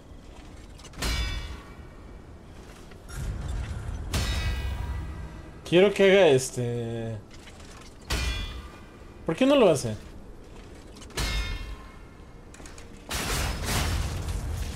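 Heavy weapon strikes clash and crackle in bursts.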